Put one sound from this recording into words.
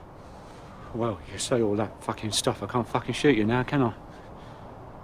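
A middle-aged man speaks quietly and coldly, close by.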